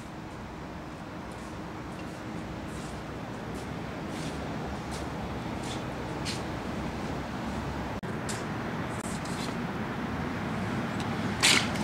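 Footsteps scuff slowly across a hard floor.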